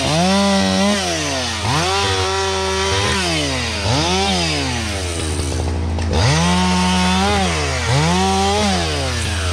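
A chainsaw revs up and down repeatedly, close by.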